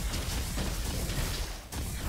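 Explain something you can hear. A spray weapon hisses in a video game.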